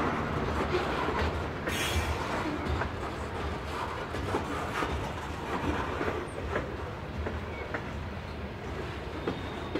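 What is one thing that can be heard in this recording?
Freight wagons rumble steadily along a track close by.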